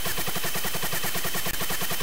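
A laser weapon fires with a buzzing zap.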